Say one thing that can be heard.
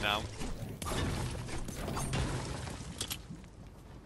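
A pickaxe strikes a wall with loud thuds.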